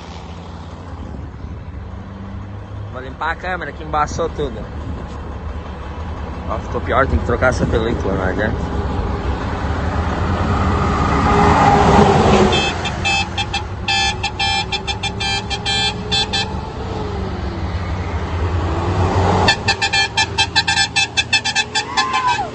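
A heavy truck engine rumbles steadily close by.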